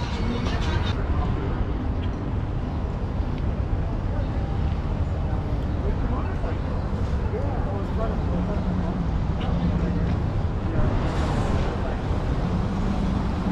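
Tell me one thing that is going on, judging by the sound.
Wind rumbles steadily across a microphone while cycling down a street.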